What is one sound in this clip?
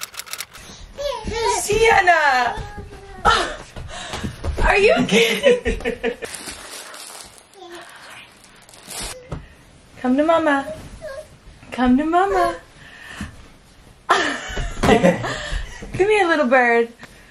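A baby squeals and babbles happily.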